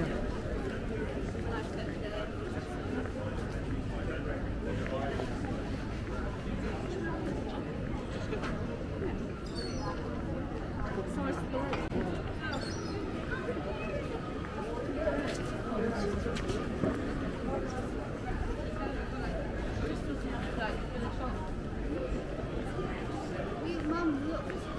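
A crowd of people chatter in a busy street outdoors.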